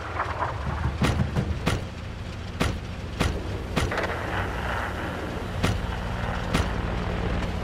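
Cannon shots boom sharply in the distance, one after another.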